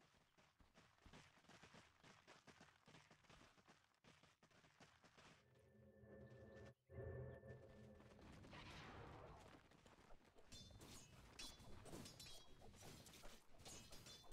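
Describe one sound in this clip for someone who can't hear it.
Swords clash and magic bursts crackle in a hectic fight.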